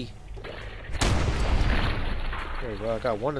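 An explosion bursts with a deep boom.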